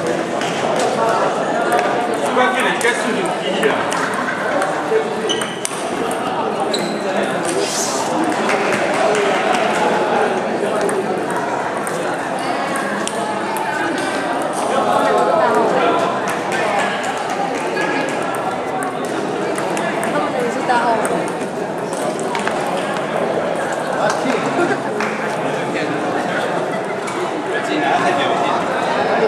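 Ping-pong balls click sharply on paddles and tables in a large echoing hall.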